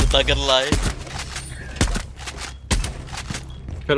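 A rifle fires in quick shots.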